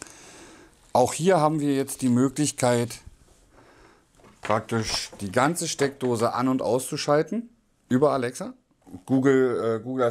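A man speaks calmly and close by, with pauses.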